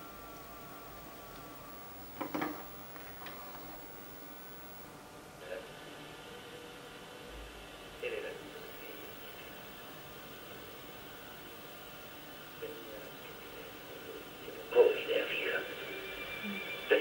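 An old home computer gives off a steady electronic hum of tones.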